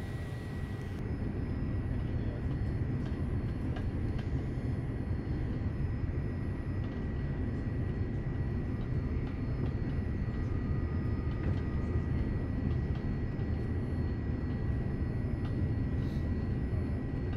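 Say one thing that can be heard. A jet airliner's engines roar steadily, heard from inside the cabin.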